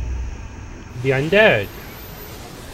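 A ghostly figure lets out a rising and falling shriek.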